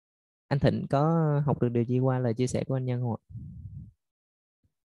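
A man speaks over an online call.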